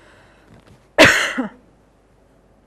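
A woman coughs.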